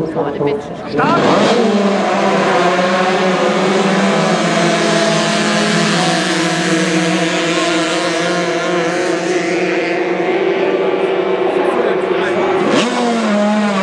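Several outboard racing hydroplanes scream past at full throttle.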